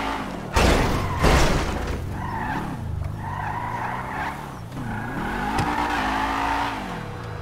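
A car engine hums and revs up and down as the car drives along.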